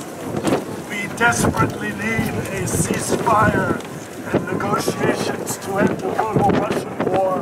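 A man shouts through a megaphone.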